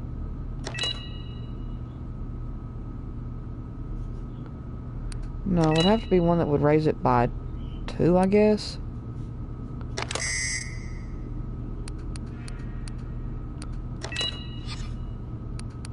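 Short electronic menu chimes sound.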